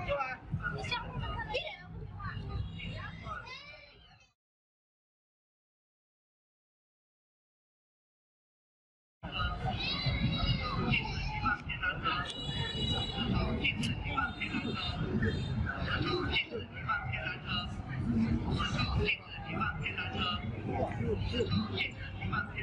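A crowd of people chatters along a busy outdoor pedestrian street.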